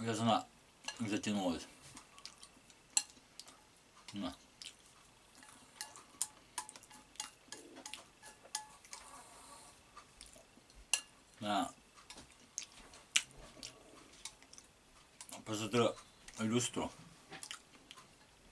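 A man chews and slurps pasta with his mouth close to the microphone.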